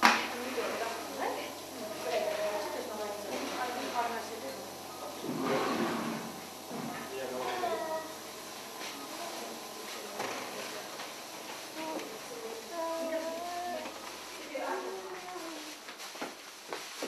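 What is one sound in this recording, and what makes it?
Adults talk quietly nearby.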